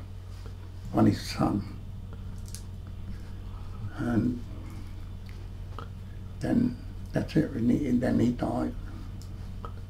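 An elderly man speaks calmly and haltingly, close by.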